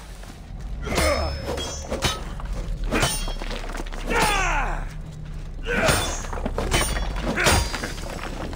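Blades clang hard against stone again and again.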